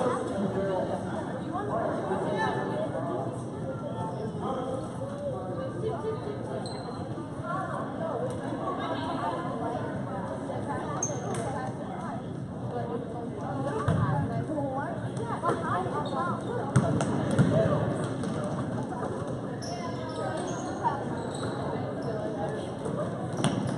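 A crowd of spectators chatters throughout a large echoing gym.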